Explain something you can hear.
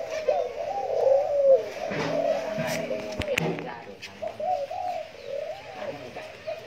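Doves coo softly and repeatedly close by.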